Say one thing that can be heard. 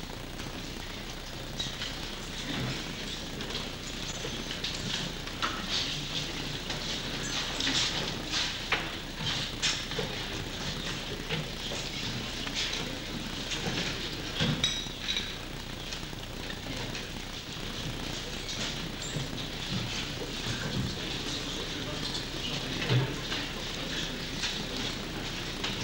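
A crowd murmurs quietly in an echoing hall.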